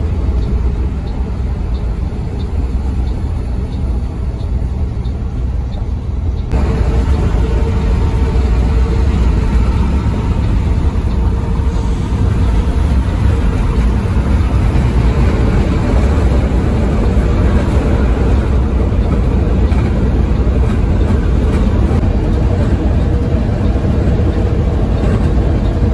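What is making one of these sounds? A large engine rumbles steadily from inside a moving vehicle.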